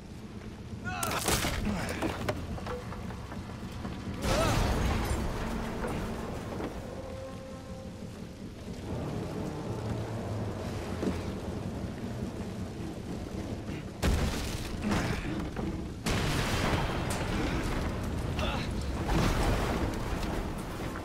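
Wooden beams crash and break with loud impacts.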